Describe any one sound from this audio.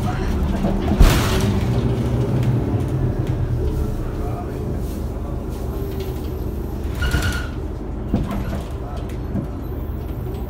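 The bus body rattles and clunks as it drives.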